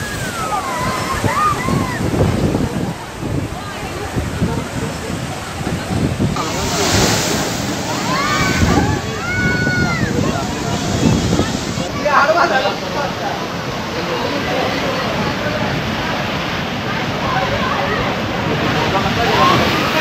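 Strong wind roars outdoors.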